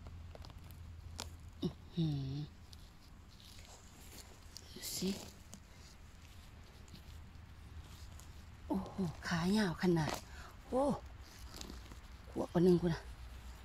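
Moss and dry needles rustle softly.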